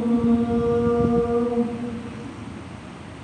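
An elderly man chants in a long, held voice nearby.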